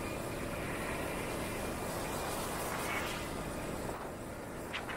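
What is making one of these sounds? A bus passes close by going the other way.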